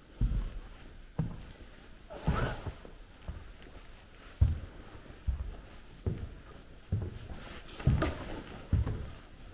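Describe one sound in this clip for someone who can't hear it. Footsteps thud slowly and steadily on a wooden floor.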